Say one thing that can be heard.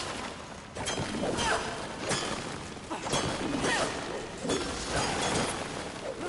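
A blade whooshes and slashes through the air.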